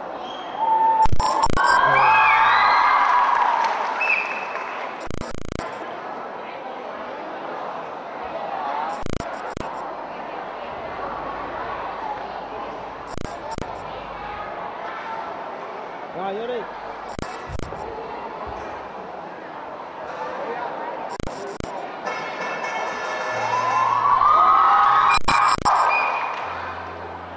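A crowd of young people cheers and shouts loudly.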